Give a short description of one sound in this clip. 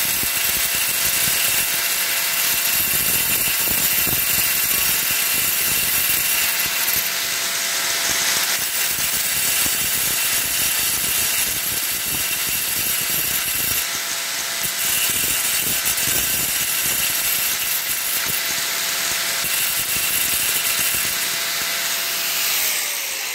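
An angle grinder whines loudly and steadily as its blade cuts through stone tile.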